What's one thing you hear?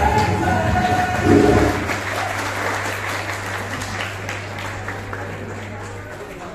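A crowd claps.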